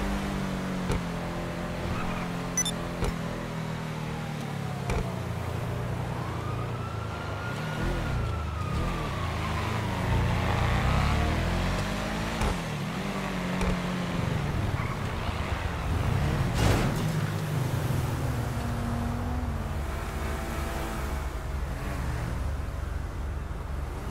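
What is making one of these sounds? A car engine roars steadily as the car speeds along.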